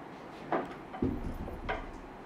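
A cat lands with a soft thump on a scratching post.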